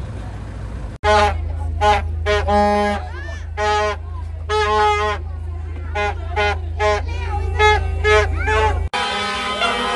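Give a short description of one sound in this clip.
A young girl blows a toy horn in short hoots.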